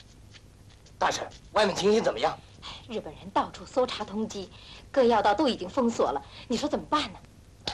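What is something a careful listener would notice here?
A man speaks urgently and quickly, close by.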